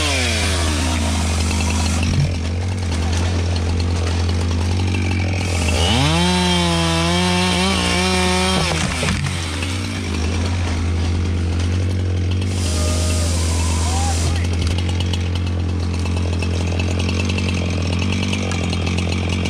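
A chainsaw roars loudly and revs up and down while cutting through a log, close by.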